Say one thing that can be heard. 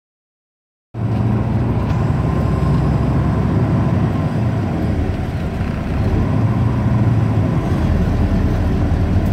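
A vehicle's engine rumbles and tyres roll on a road.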